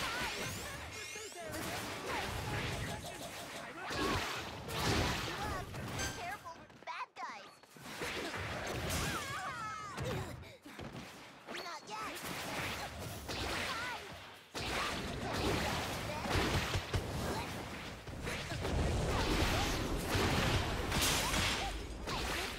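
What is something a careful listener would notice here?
Game sound effects of swishes, blasts and impacts play loudly and continually.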